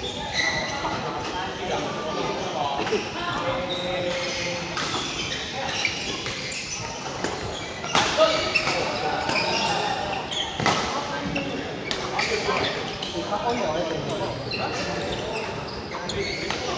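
Young men call out and talk across an echoing hall.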